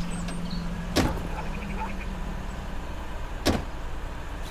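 A car door clicks open and shut.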